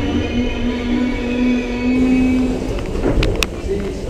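A subway train rumbles along with a steady electric whine.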